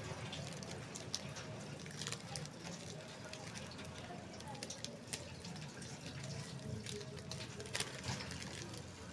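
A plastic wrapper crinkles and rustles as hands tear it open.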